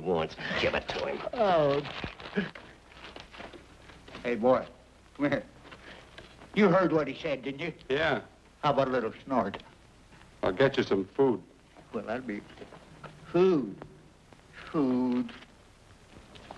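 A man speaks in a firm, clear voice, heard through an old, thin recording.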